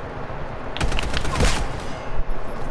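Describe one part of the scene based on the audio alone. A gun fires a burst of loud shots.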